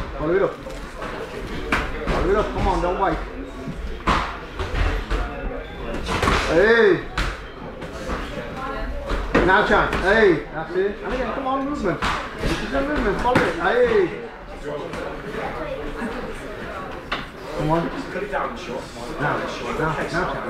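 A man calls out instructions nearby, loud and animated.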